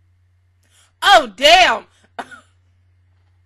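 A young woman exclaims loudly and excitedly into a close microphone.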